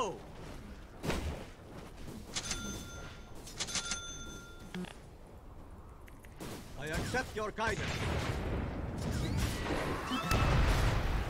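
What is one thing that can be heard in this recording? Video game sound effects chime and clash.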